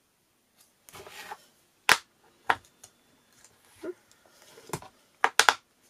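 Paper rustles and slides on a hard surface.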